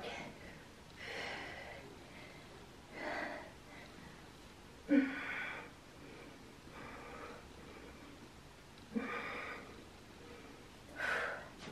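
A young woman exhales sharply with effort.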